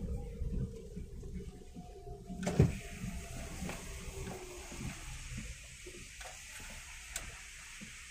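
Windscreen wipers swish and thump across the glass.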